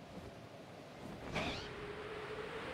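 Large wings beat with a whooshing flap.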